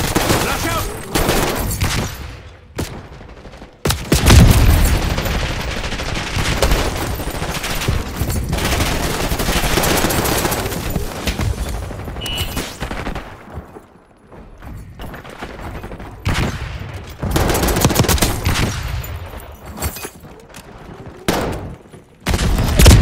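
Rapid gunfire crackles in loud bursts.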